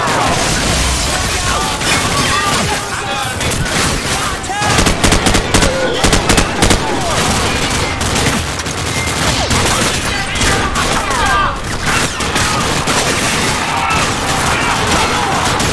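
Bullets smack into walls.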